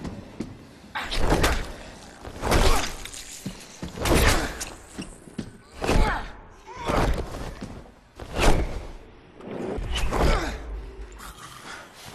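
Blows land in a scuffle with heavy thuds.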